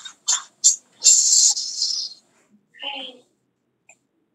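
Fabric rustles and rubs right against the microphone.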